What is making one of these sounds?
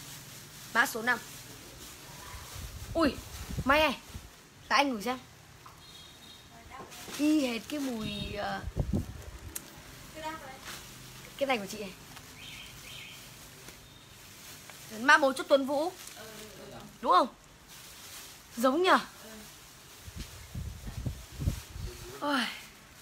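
Fabric rustles as a jacket is handled.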